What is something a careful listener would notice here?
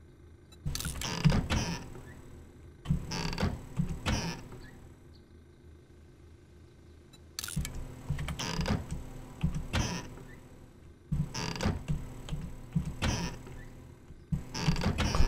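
A wooden cupboard is opened and rummaged through with rustling and clattering.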